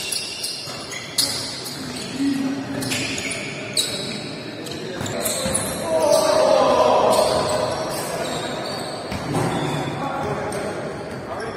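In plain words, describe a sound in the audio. Basketballs bounce with hollow thuds on the court.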